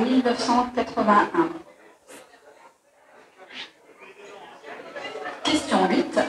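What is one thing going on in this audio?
A woman speaks clearly and close by, with pauses.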